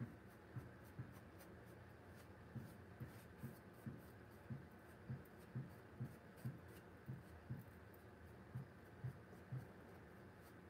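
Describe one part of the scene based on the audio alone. A stiff brush taps and dabs against a canvas in quick, soft thumps.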